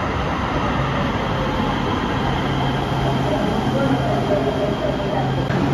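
Steel wheels squeal and hum on the rails.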